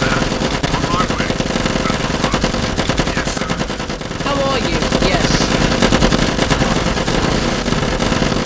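Rapid gunfire rattles without a break.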